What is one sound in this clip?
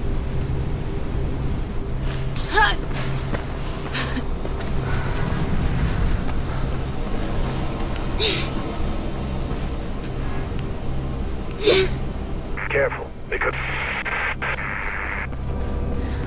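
Footsteps run quickly across a hard rooftop.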